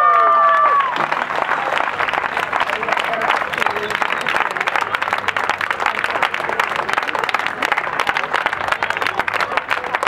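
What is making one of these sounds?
A crowd claps and cheers steadily.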